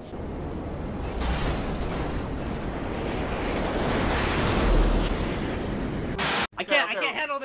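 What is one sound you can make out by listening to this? An explosion blasts a car into the air with a loud roar.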